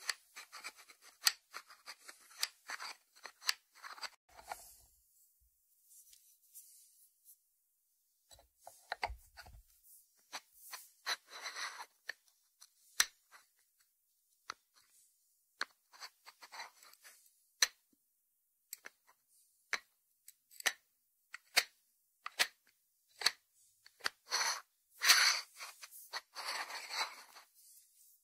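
Fingertips tap and scratch on a ceramic dish.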